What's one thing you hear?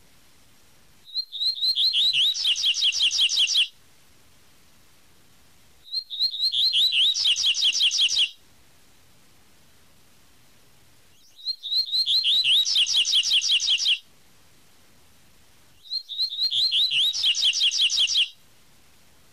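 A small songbird sings a bright, rapid, whistling song in repeated bursts.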